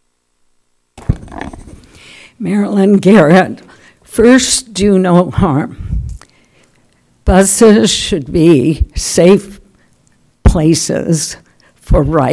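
An elderly woman speaks calmly into a microphone.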